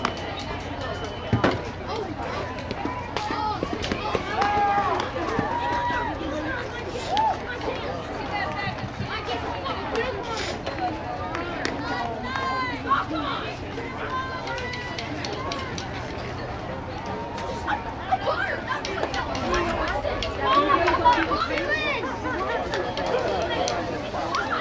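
Girls and adults cheer and shout outdoors.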